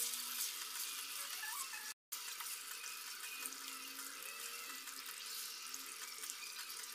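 A stew sizzles and bubbles in a pan.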